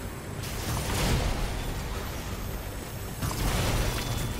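A gun fires in loud blasts.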